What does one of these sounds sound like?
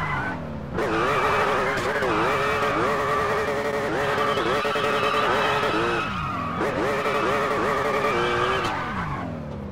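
Tyres screech as a car spins and skids.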